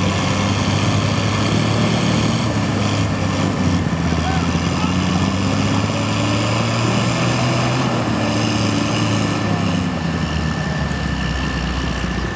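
Muddy water splashes and churns under truck wheels.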